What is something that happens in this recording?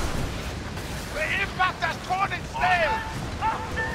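Waves crash against a ship's hull.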